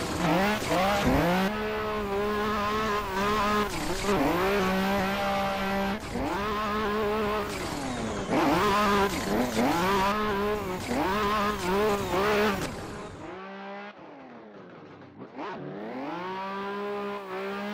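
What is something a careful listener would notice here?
A sports car engine revs up and down hard as the car drifts.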